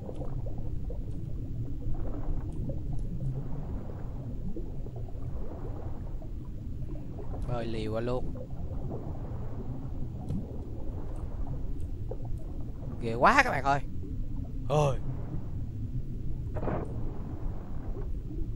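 Water rumbles in a low, steady underwater drone.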